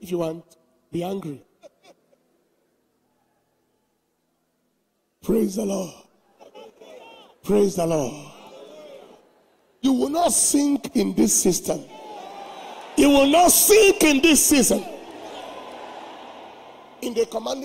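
A man speaks forcefully through a microphone in a large echoing hall.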